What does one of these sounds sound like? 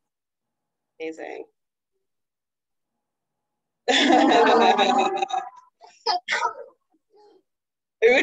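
A young woman laughs over an online call.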